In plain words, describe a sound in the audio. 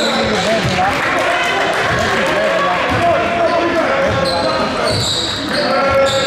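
A basketball bounces with dull thumps on the floor.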